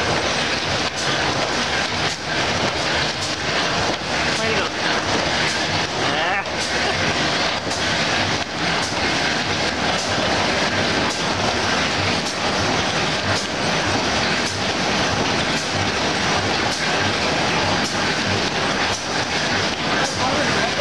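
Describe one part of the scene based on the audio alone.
A large machine with rollers rumbles and clatters loudly and steadily.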